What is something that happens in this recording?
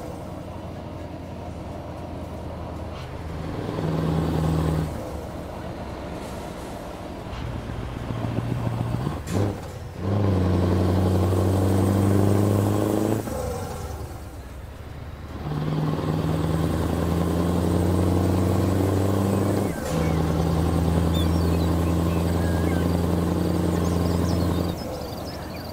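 A truck engine drones steadily, swelling and easing off.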